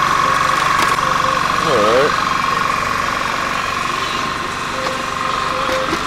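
A portable generator engine runs with a steady droning hum nearby.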